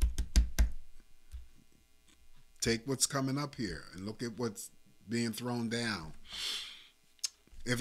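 Playing cards tap and riffle on a table.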